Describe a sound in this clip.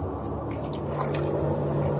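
Water churns and bubbles inside a metal tank.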